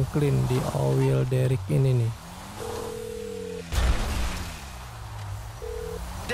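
A car engine revs loudly, its pitch rising and falling.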